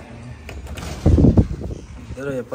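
A door handle clicks and a door bumps open.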